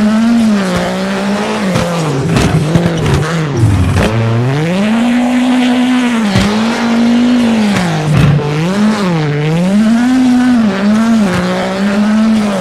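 A rally car engine revs hard, rising and falling as gears shift.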